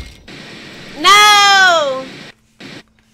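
A young woman cries out loudly close to a microphone.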